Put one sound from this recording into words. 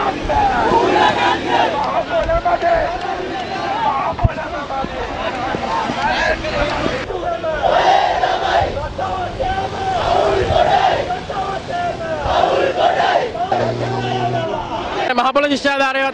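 A crowd of young men chants loudly outdoors.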